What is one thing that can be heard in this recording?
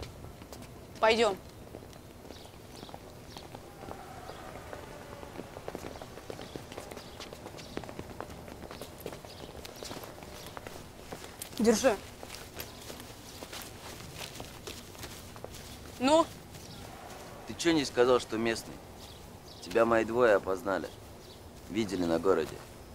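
Boys talk and call out to one another outdoors.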